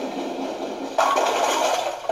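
Bowling pins crash as a ball strikes them.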